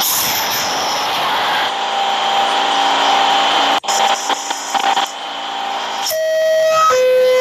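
A subway train hums and rumbles as it moves.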